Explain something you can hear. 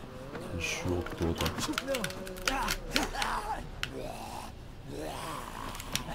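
A zombie growls and groans nearby.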